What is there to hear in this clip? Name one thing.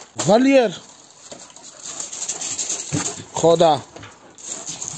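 A dog lets out high, drawn-out whines close by.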